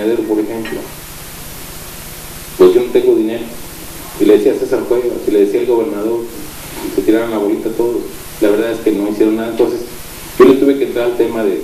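A middle-aged man speaks with animation into a microphone.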